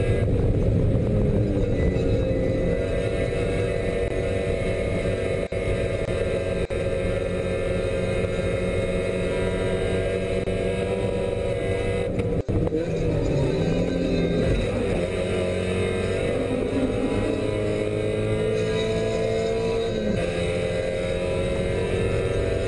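Tyres hum and rumble on the track.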